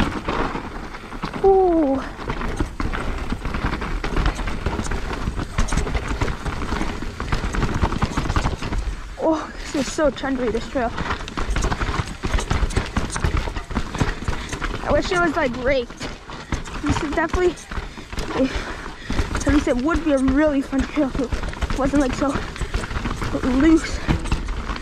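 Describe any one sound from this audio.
A bicycle's frame and chain clatter over bumps.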